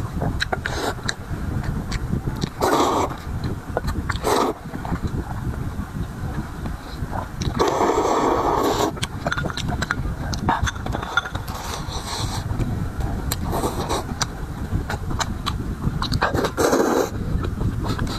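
A man slurps noodles loudly and close by.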